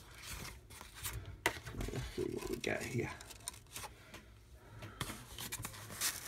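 A card rustles as it slides under a clip.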